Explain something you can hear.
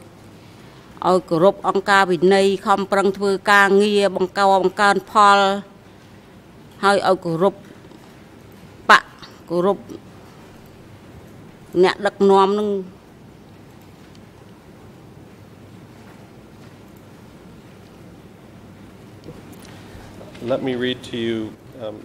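An elderly woman speaks into a microphone in bursts, calmly and close up.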